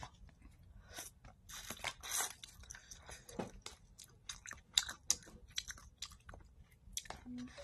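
A young woman chews food with wet, crunchy sounds close to a microphone.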